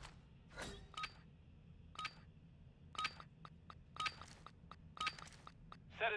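An electronic countdown beeps once a second.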